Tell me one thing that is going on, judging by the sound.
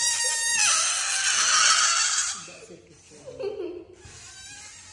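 A young girl laughs close by.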